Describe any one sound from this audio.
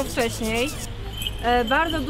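A young woman speaks outdoors, close by.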